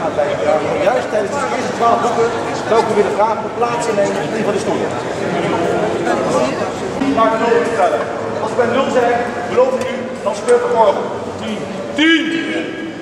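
A man speaks with animation to a crowd nearby.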